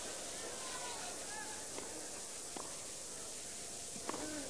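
A tennis ball is struck hard with a racket.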